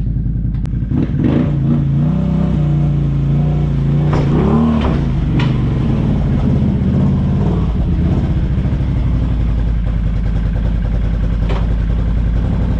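A quad bike engine revs louder as the quad rolls closer.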